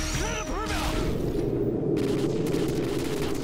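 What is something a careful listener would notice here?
A landmine explodes with a loud blast.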